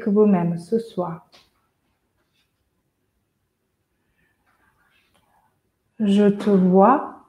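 A woman speaks softly and slowly, close by, with long pauses.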